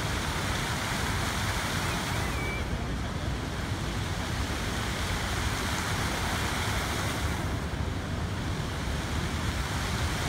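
Fountain jets spray and splash steadily into water.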